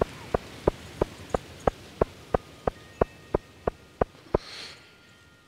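Footsteps tap steadily on a stone path.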